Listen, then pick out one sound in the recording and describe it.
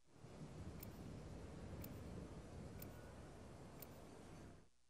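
A countdown ticks with short, sharp beeps, about once a second.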